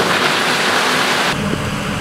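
Rocks rumble and clatter as they tip out of a dump truck bed.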